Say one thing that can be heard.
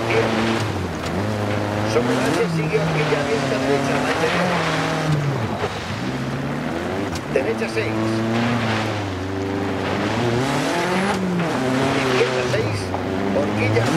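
A car engine revs up and down steadily.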